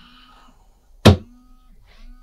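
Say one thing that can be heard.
A glass bottle knocks against a hard floor.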